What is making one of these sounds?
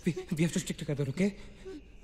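A young man speaks quietly and tensely.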